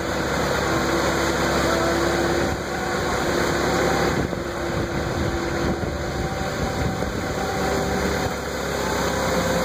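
A forklift's tyres roll over a concrete floor.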